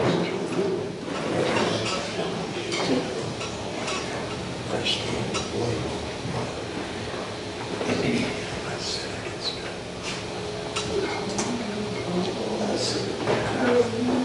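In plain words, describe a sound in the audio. An electric bass plays a low line.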